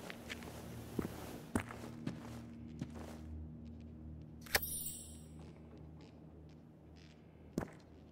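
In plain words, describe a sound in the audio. Items are picked up with short clicks and rustles.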